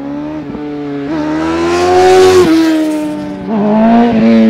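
A motorcycle roars past loudly.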